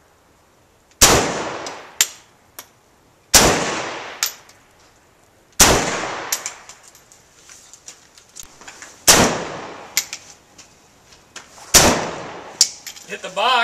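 Rifle shots crack loudly one at a time, ringing out briefly after each.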